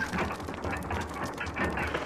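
A fire crackles in a furnace.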